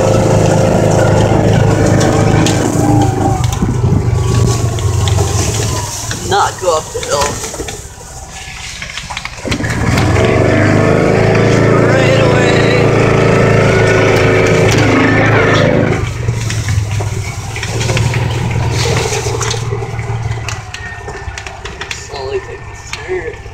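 A small vehicle engine drones close by, rising and falling in pitch.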